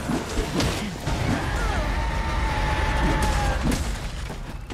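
A large monster roars loudly.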